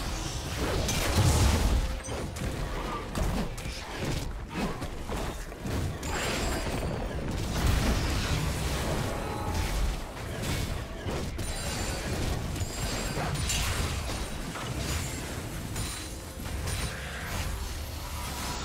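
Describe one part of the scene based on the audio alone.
Video game spell effects whoosh and clash in a fast battle.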